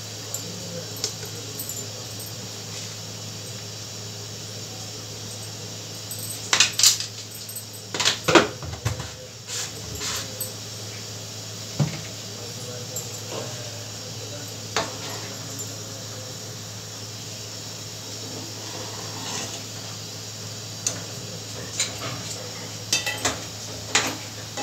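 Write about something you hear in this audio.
A metal ladle clinks and scrapes against a pot while stirring.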